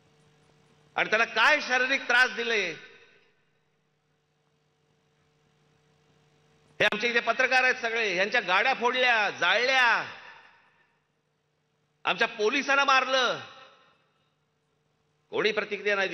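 A man speaks forcefully into a microphone over loudspeakers, in bursts with pauses.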